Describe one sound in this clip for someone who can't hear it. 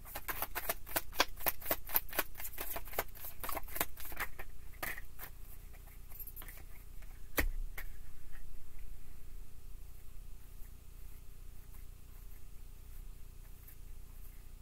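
Playing cards riffle and slap together as they are shuffled by hand.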